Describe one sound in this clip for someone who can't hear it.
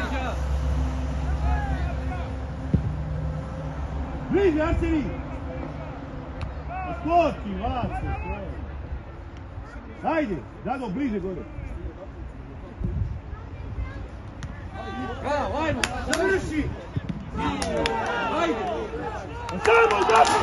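Young men shout to each other across an open sports field.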